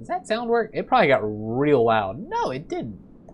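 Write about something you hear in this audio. A young man exclaims loudly in surprise.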